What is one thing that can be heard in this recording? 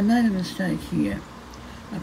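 A fingertip rubs softly across paper.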